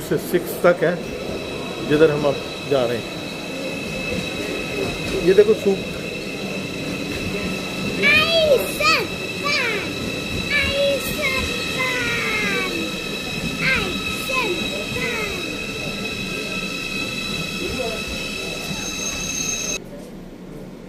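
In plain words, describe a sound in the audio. A train rolls slowly past with a steady high electric whine.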